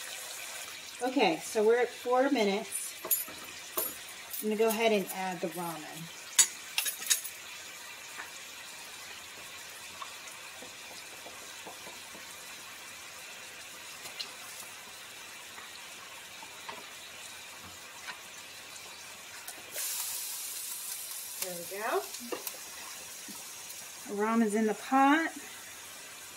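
A woman speaks calmly nearby.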